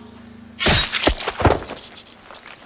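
Swords clash and strike in a brief fight.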